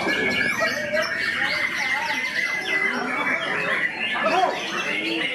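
A caged songbird sings loud, rapid, chattering phrases close by.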